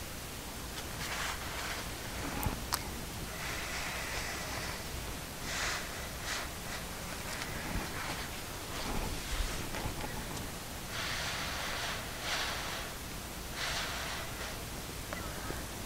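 A paper towel rustles and scrapes as a gloved hand wipes with it.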